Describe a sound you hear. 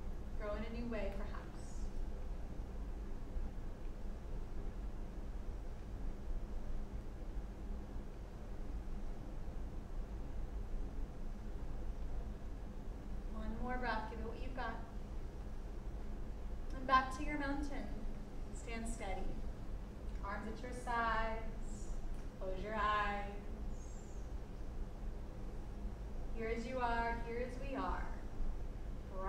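A woman gives calm spoken instructions.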